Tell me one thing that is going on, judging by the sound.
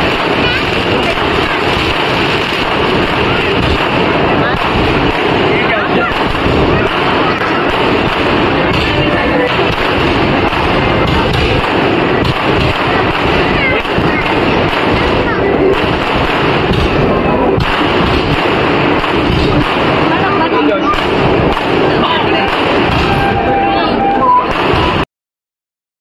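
Fireworks crackle and bang rapidly overhead.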